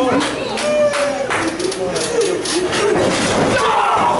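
A slap lands on a body.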